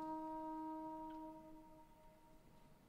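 A woman sings a long held note through a microphone, in a large hall.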